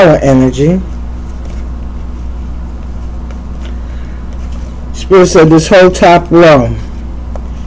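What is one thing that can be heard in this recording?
Playing cards rustle and flick as they are shuffled by hand.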